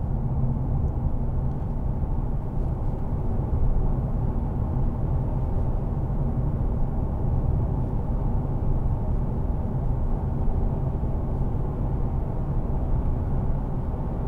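A car's engine hums steadily with a low rumble from inside the car.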